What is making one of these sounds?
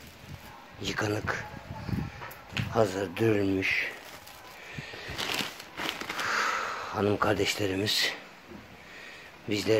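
Plastic bags rustle and crinkle as they are handled close by.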